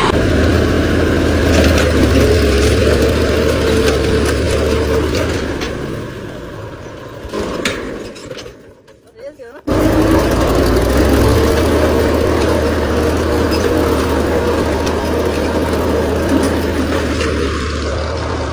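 A plough scrapes and churns through soil.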